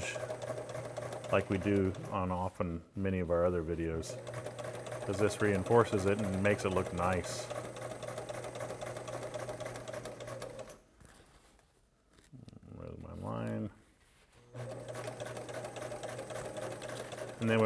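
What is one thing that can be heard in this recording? A sewing machine runs with a steady hum.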